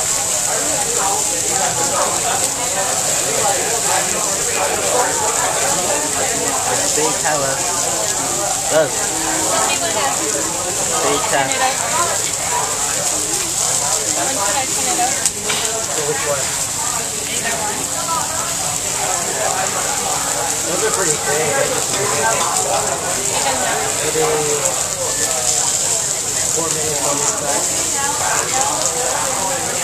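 Several people chatter nearby in a lively, crowded room.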